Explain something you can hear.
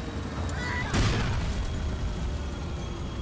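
A car explodes with a loud boom.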